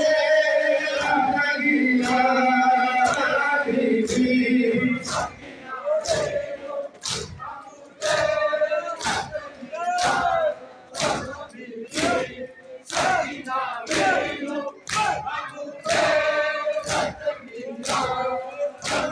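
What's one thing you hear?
Many hands beat on chests in a steady rhythm.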